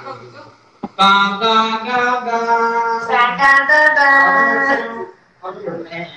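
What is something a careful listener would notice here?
A man sings loudly in a held, wavering tone.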